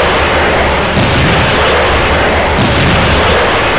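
Heavy explosions boom with a deep rumble.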